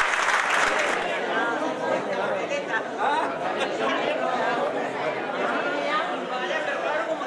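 A crowd of elderly men and women chatter as they move about.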